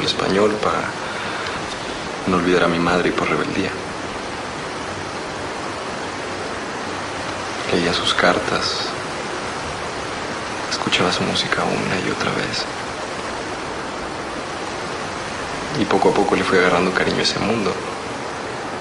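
A young man speaks quietly and calmly nearby.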